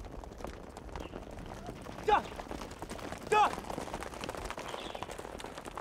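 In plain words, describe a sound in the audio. Horses' hooves clop on stony ground.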